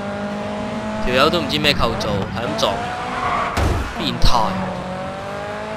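Tyres screech as a car slides through a turn.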